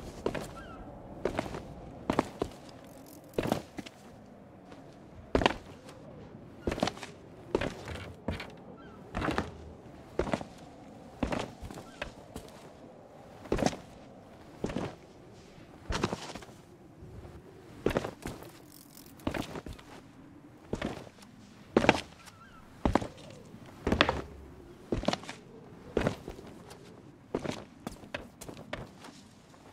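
Footsteps thud on rock at an uneven pace.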